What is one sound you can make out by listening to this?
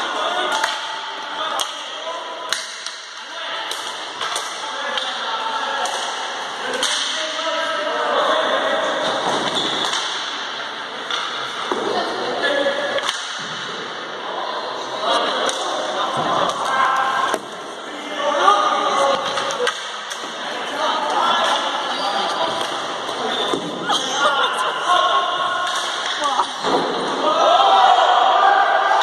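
Sticks clack against a ball and the floor in a large echoing hall.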